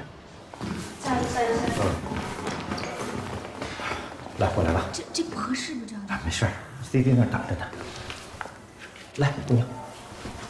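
A younger man speaks in a friendly way nearby.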